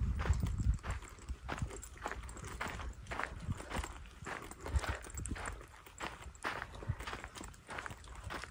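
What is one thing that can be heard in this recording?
Footsteps crunch steadily on a dry gravel path.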